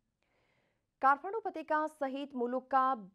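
A woman reads out calmly through a microphone.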